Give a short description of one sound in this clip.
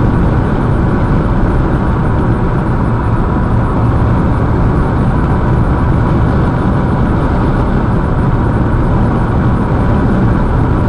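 A car drives steadily along a road, heard from inside with a low rumble of tyres and wind.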